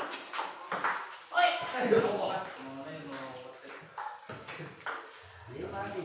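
A ping-pong ball clicks back and forth off paddles and a table.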